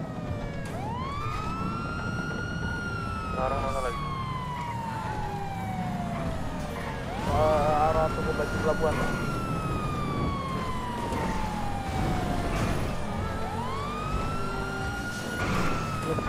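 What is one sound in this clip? A car engine revs high, rising through the gears and dropping at each shift.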